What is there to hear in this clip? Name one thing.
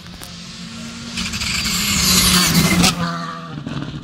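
A rally car races past close by with a loud roaring engine.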